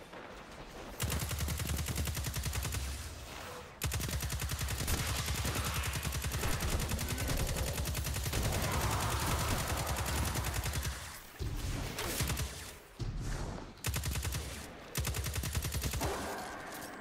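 An automatic gun fires rapid bursts.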